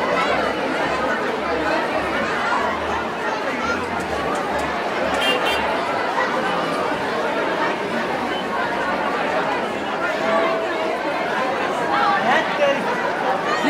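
Young women in a crowd scream and cheer.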